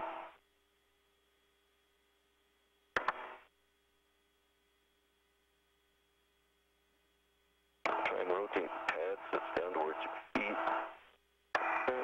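A man speaks calmly over a crackly radio link, in short bursts.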